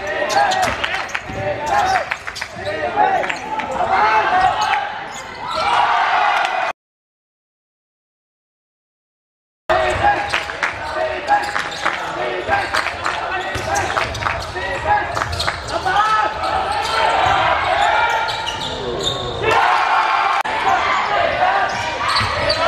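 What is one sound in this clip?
Young spectators chatter and shout in an echoing hall.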